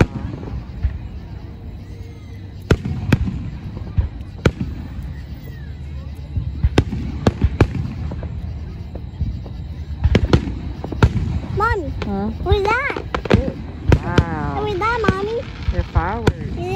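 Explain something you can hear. Aerial fireworks burst with sharp bangs in the distance.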